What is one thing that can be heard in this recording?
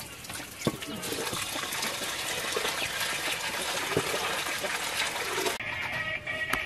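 Water runs from a tap and splashes.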